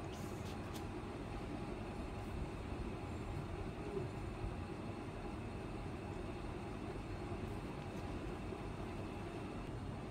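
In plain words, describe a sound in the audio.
A pencil eraser rubs on paper.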